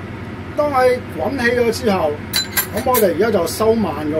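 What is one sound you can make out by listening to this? A metal ladle scrapes and stirs in a pan.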